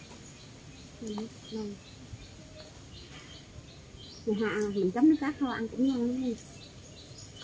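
A young woman talks briefly and calmly nearby.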